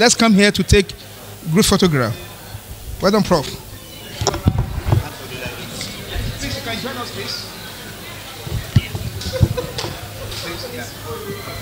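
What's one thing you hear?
A crowd of men and women chats in a large echoing hall.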